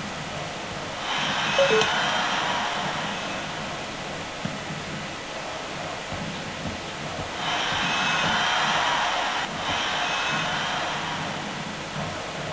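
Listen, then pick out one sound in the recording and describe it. A stadium crowd cheers in swelling waves.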